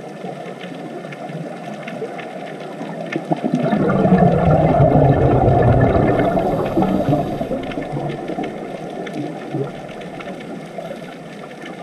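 Air bubbles burble and gurgle underwater from divers' breathing gear, swelling louder for a while in the middle.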